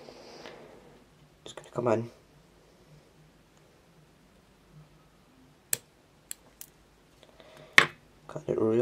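Small scissors snip a thread with a sharp click.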